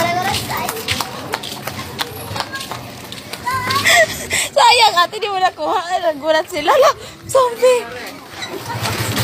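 Footsteps in sandals slap on pavement.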